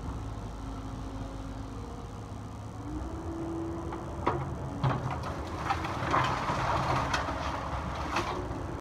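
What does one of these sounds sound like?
A heavy excavator engine rumbles and whines close by.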